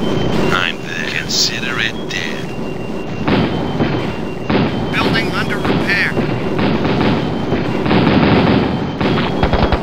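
Tank engines rumble steadily.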